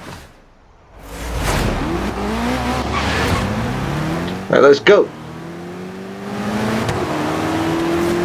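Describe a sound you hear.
A racing car engine revs and roars as it speeds away.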